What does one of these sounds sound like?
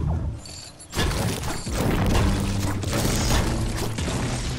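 A pickaxe strikes brick repeatedly.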